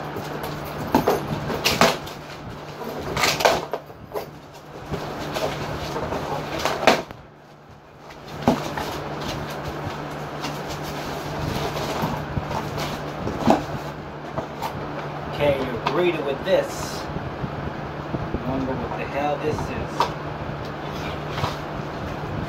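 Cardboard rustles and scrapes as a box is handled and opened.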